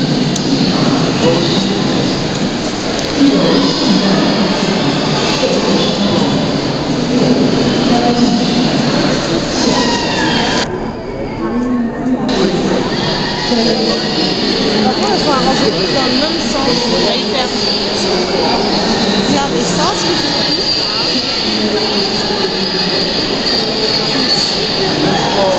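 Men and women chatter nearby in a large, echoing hall.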